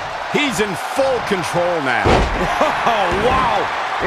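A body slams heavily onto a wrestling mat.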